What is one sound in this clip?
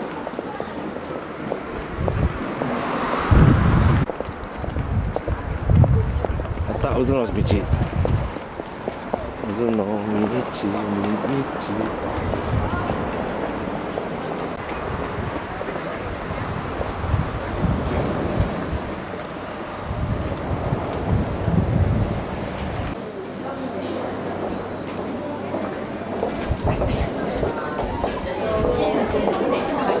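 Footsteps walk on pavement close by.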